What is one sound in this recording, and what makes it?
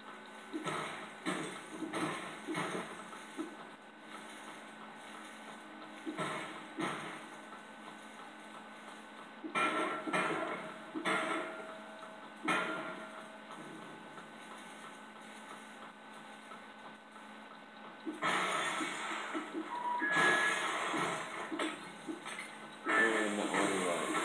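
Video game sound effects clatter and blast in bursts from a television speaker.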